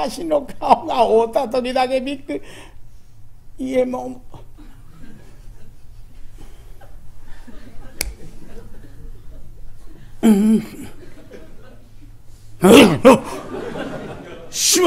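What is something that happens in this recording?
An elderly man speaks expressively into a microphone, with pauses between phrases.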